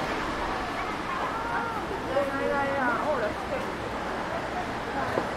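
Men and women chatter nearby as they walk past.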